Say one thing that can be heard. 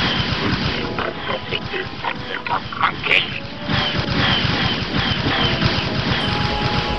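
Laser cannons fire in quick bursts.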